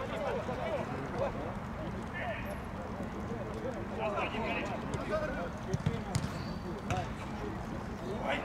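Young men shout and call out to each other across an open field.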